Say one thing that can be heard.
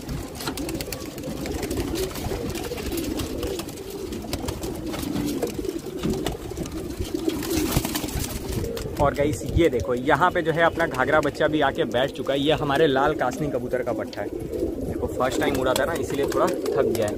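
Pigeons coo steadily close by.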